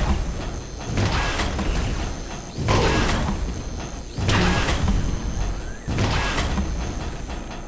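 A lightning gun crackles and hums in loud bursts.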